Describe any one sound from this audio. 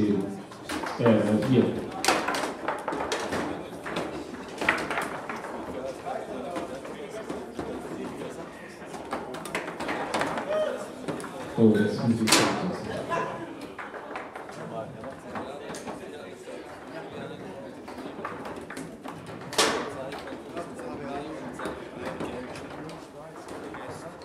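Foosball rods rattle and the ball clacks sharply against the table.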